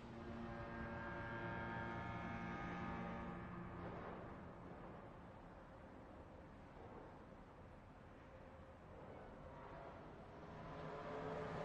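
A train engine rumbles and hums as a train rolls slowly along the tracks.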